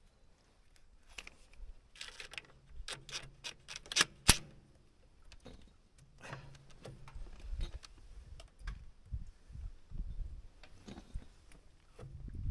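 A cordless drill whirs and rattles in short bursts.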